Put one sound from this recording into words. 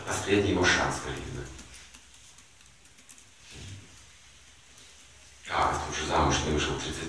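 An elderly man speaks calmly, with pauses.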